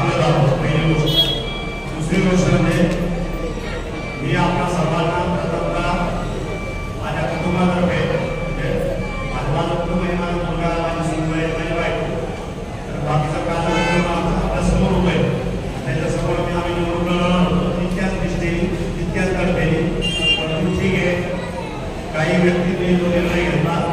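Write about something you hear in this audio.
An elderly man speaks with animation into a microphone, heard through a loudspeaker in an echoing hall.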